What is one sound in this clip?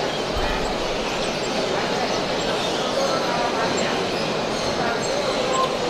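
Many small birds chirp and twitter all around in a loud, busy chorus.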